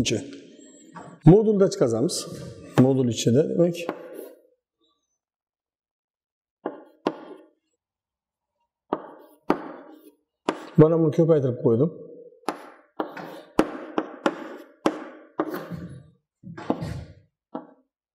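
A man speaks calmly nearby, explaining.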